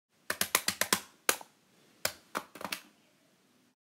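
A small toy robot clicks and clatters as it moves.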